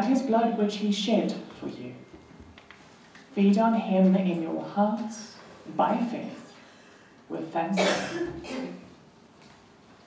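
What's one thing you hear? A woman speaks slowly and solemnly nearby.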